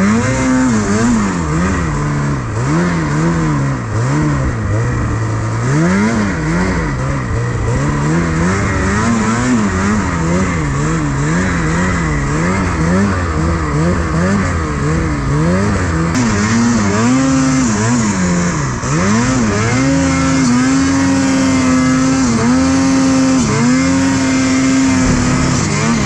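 A snowmobile engine roars up close, revving up and down constantly.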